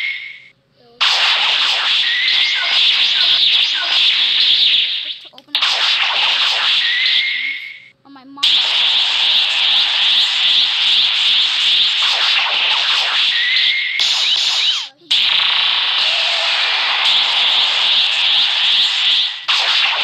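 Energy blasts whoosh and crackle loudly in a fast fight.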